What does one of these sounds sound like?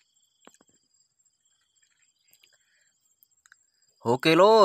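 Boots tread softly on wet soil.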